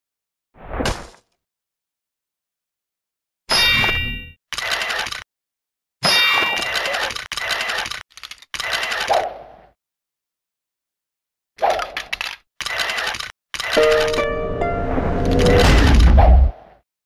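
Weapon blows strike and clatter in short bursts.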